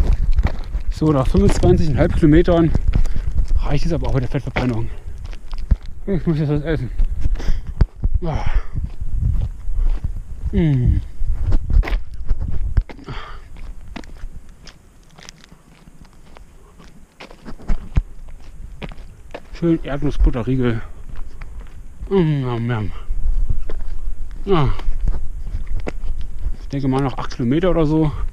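A man talks close to a microphone, slightly out of breath.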